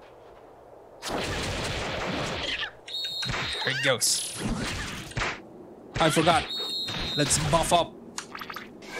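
Heavy blows thud and crack in a fight.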